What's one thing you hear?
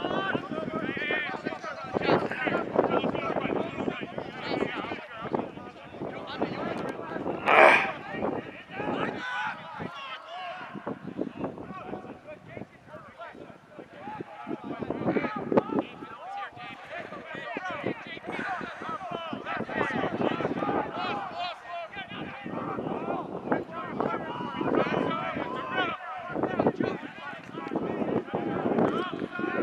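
Players call out to each other outdoors.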